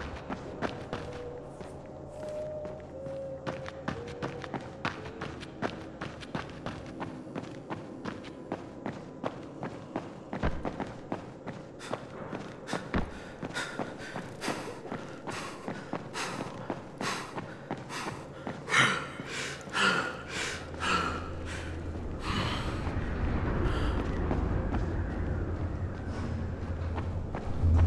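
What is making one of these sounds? Footsteps walk steadily across a hard floor indoors.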